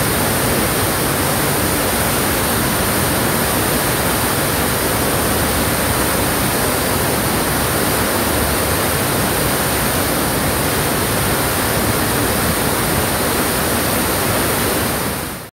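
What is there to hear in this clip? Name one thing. Floodwater roars steadily as it gushes through open dam gates.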